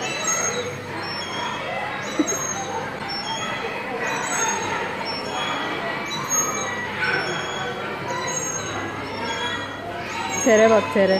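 An arcade ride plays a tinny electronic tune.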